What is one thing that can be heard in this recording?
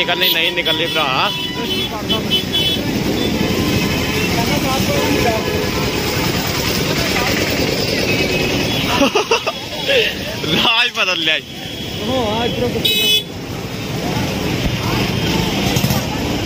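A crowd of people chatters outdoors on a busy street.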